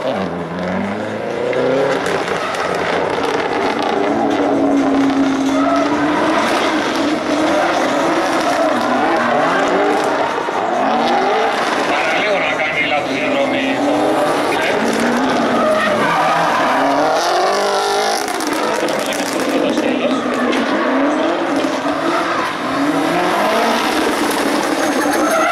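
A car engine revs hard and whines up and down nearby.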